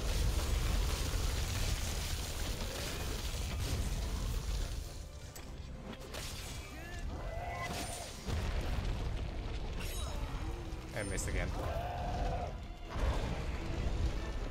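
A huge creature roars and rumbles loudly.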